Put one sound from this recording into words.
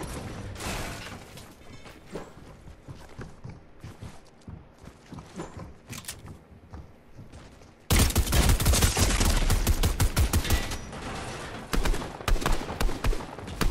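Building pieces clatter into place as a game character builds.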